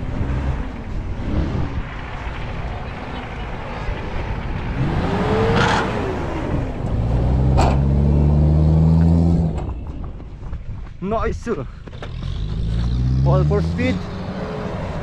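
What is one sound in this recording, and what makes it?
An engine revs hard as an off-road vehicle climbs over dirt mounds.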